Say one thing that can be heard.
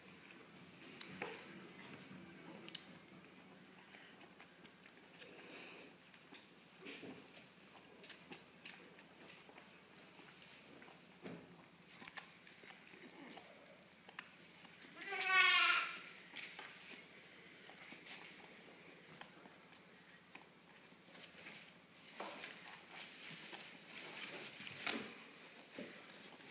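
A lamb sucks and slurps noisily at a bottle.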